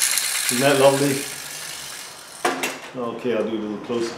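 A tin toy locomotive clatters as it is set down on a board.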